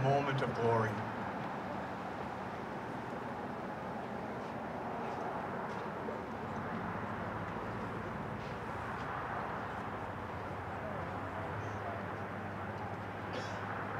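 A concert band plays music outdoors.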